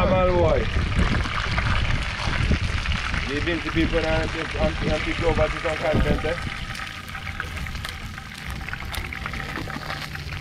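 Metal utensils scrape and clink in a frying pan.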